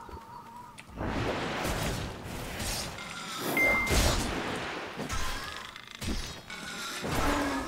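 A magical attack bursts and crackles with a loud whoosh.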